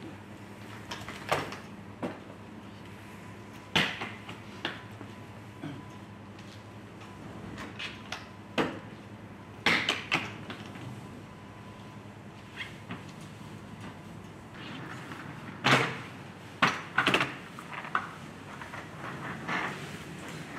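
Plastic crates knock and clatter as they are loaded and carried.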